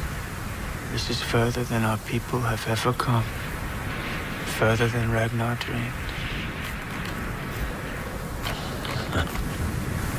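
Wind blows steadily across open ground.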